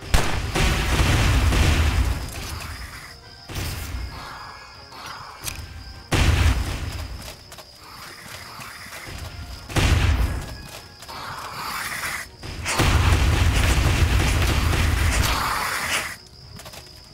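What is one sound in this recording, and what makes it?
Magic spells burst with loud crackling whooshes.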